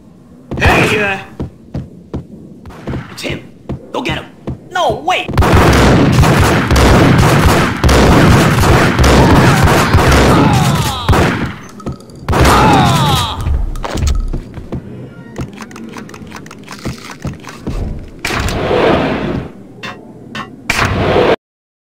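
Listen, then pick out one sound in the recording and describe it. Gunshots ring out in quick bursts, echoing.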